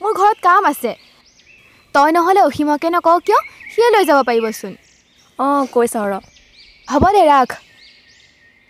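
A young woman talks on a phone, close by.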